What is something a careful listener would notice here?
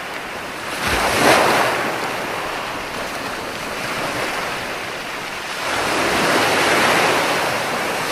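Waves break and wash up on a shore in surging rushes.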